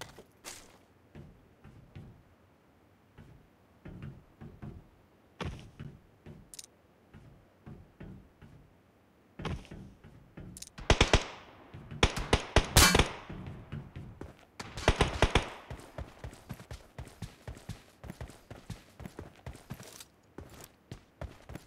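Footsteps clank on hollow metal roofs.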